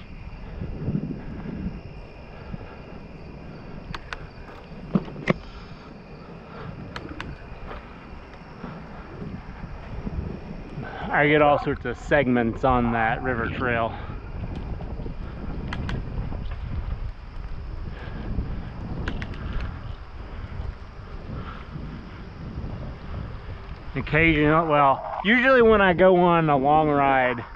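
Wind rumbles past a moving bicycle outdoors.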